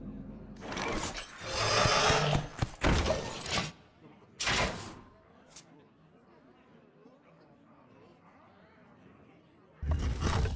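Digital whooshes and thuds sound as game cards land.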